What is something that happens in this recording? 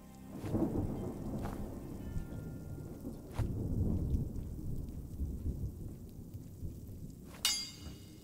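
Molten lava rumbles and bubbles low in a forge.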